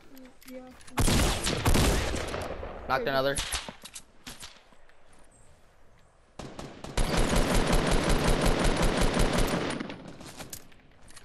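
A gun fires in rapid bursts of loud shots.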